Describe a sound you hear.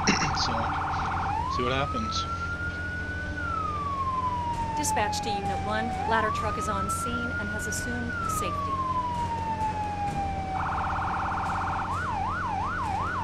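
A siren wails, switching between a rapid warble, long rising and falling sweeps and quick yelps.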